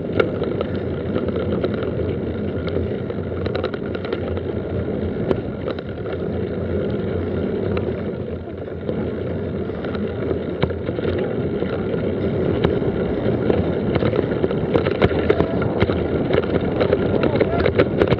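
Mountain bike tyres roll over a dirt and leaf-covered trail.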